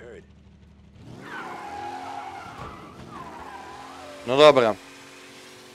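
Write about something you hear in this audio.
A racing car engine starts and revs as the car pulls away.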